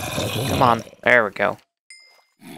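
A pig squeals and grunts.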